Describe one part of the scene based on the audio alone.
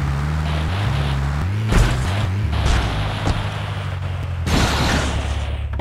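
A van engine hums as the van drives.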